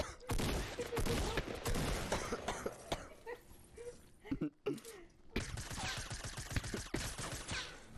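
Shotgun blasts ring out in quick bursts.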